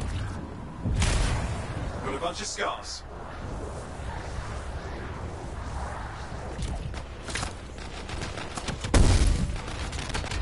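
Loud blasts and booms of game combat go off.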